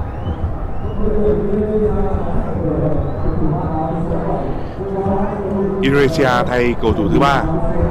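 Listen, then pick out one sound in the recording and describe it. A stadium crowd chants and sings together.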